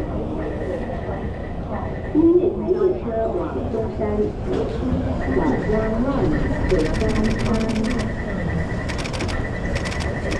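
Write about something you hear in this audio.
A crowd of people murmurs and talks in a large echoing hall.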